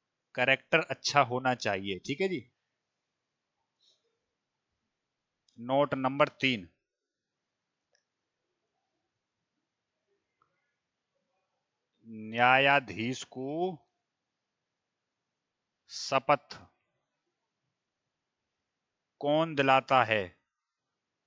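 A man speaks calmly into a headset microphone, in short phrases with long pauses.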